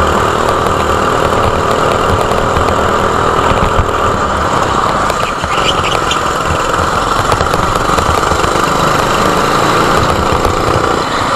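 A kart engine buzzes loudly and steadily up close.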